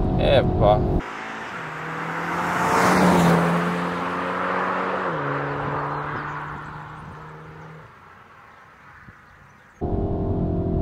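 A car speeds past outdoors with a rushing whoosh and engine roar, then fades into the distance.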